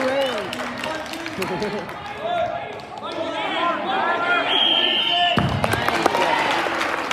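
Spectators in a large echoing gym shout and cheer.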